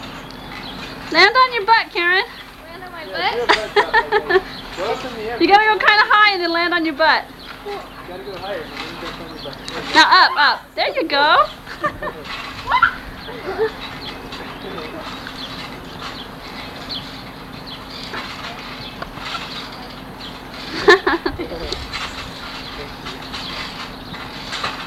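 Trampoline springs creak as girls bounce.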